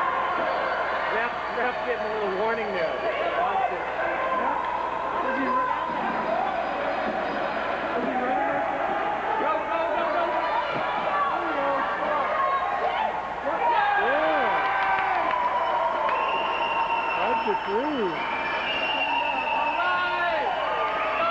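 Children shout and call out across a large echoing ice rink.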